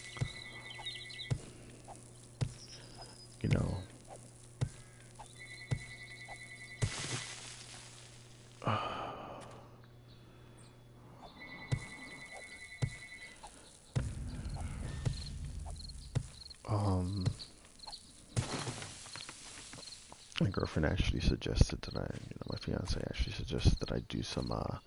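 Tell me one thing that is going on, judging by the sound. A wooden club swings and thuds repeatedly.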